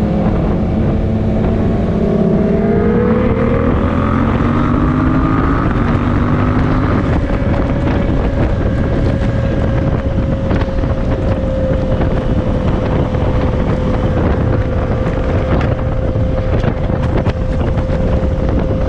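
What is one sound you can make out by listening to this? A motorcycle engine hums steadily up close and rises in pitch as it speeds up.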